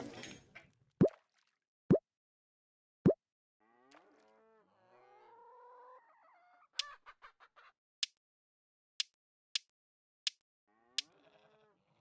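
Short popping taps sound as game menus open and close.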